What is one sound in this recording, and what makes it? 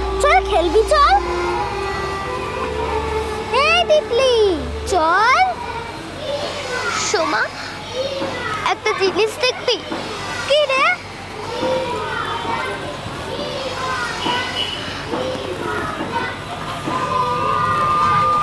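A second young girl answers softly close by.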